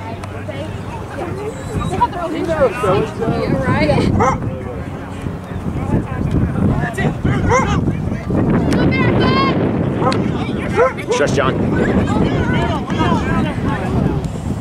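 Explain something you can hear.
Young men and women shout and call to each other across an open field.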